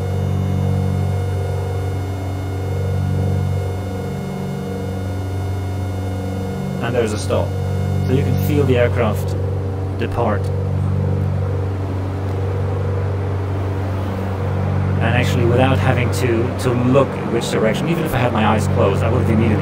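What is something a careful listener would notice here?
A small aircraft engine drones steadily.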